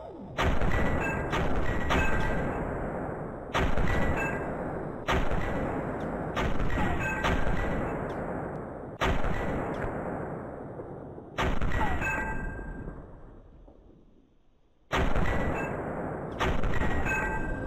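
A rifle fires loud shots that boom and echo.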